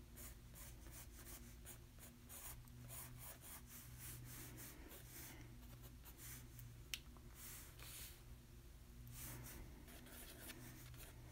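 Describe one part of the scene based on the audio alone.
A pencil scratches and sketches on paper close by.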